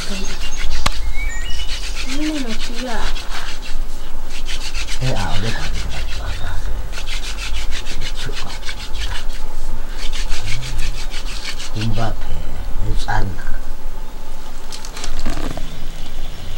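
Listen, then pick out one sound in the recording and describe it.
A wooden stick rubs and whirs rapidly against another stick.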